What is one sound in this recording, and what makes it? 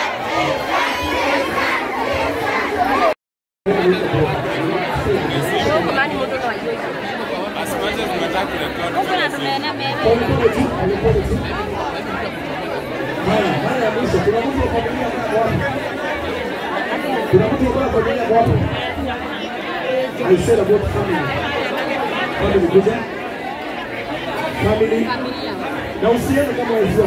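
A large crowd of men and women murmurs and talks all at once.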